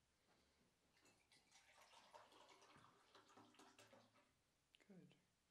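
Water pours into a glass.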